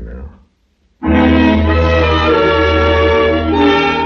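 Music plays from an old radio.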